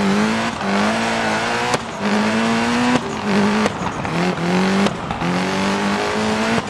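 A racing car engine roars at high revs, its pitch climbing and then dropping sharply with each quick gear change.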